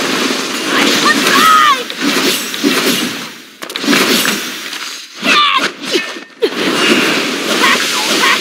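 Magic spells blast and crackle in quick bursts.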